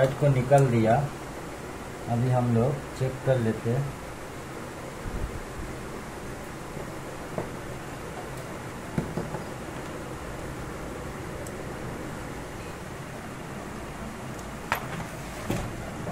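A circuit board knocks lightly as it is handled.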